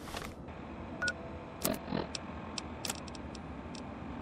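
Short electronic clicks and beeps sound from a handheld device.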